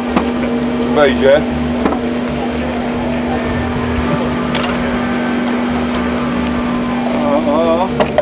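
A man speaks loudly outdoors among a crowd.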